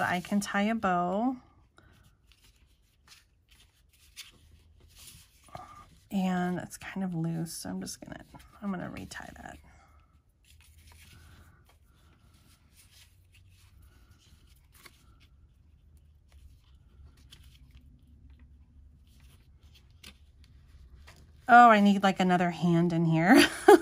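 Paper rustles softly as it is folded and handled.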